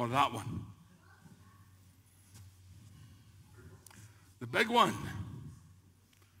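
An elderly man speaks with animation.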